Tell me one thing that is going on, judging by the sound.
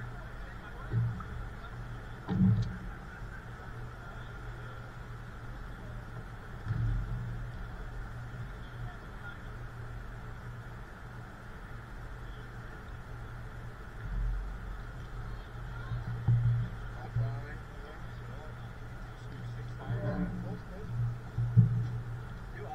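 Bumps and knocks thud against a goal frame close by.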